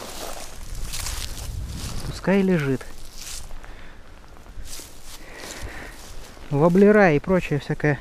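Dry grass crunches and rustles underfoot.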